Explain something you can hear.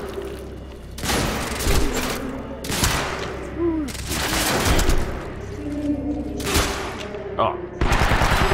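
Gunfire bursts loudly and repeatedly.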